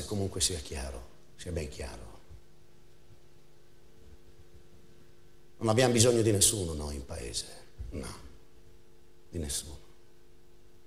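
A middle-aged man speaks in short bursts, with long pauses.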